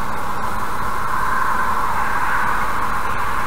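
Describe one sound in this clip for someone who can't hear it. A passing car swishes by close alongside.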